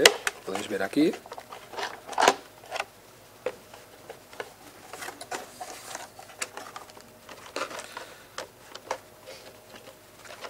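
Small plastic parts click and tap as a toy car is handled up close.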